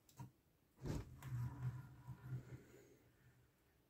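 A toy crane rolls across a table.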